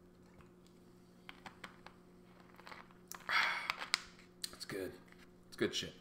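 A plastic bottle cap crackles as a young man twists it.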